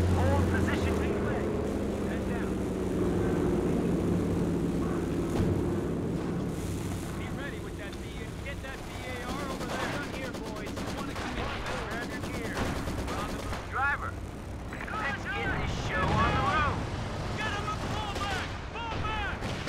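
Gunfire and explosions rumble in a battle.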